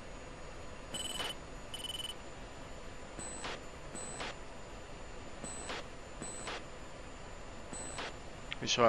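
A cockpit warning tone beeps over and over.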